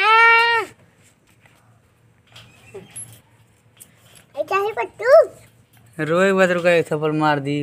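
A parrot squawks and screeches loudly close by.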